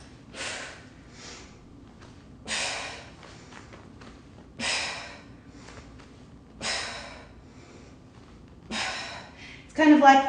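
A woman exhales sharply in steady, even breaths.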